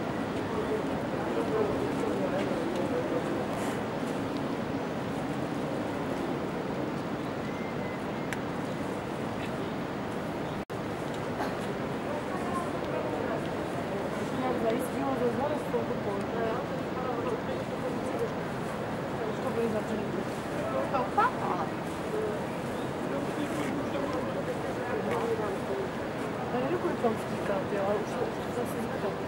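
A barge engine rumbles low and steady at a distance.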